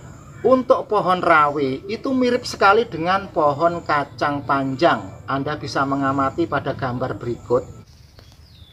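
A man speaks with animation close to the microphone.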